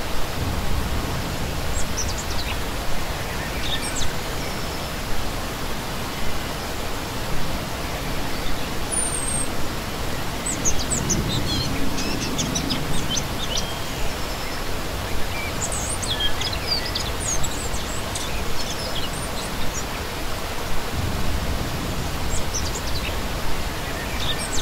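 A stream rushes and splashes steadily over rocks outdoors.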